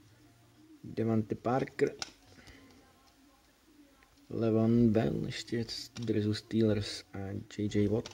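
Trading cards slide and rub against each other as they are flipped through.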